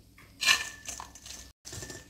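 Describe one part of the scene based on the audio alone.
Powder pours from a paper bag into a metal bowl with a soft rustle.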